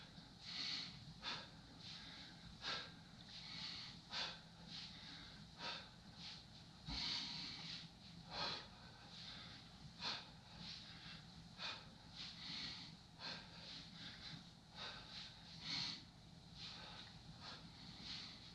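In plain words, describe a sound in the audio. A man exhales sharply and rhythmically with each kick, close by.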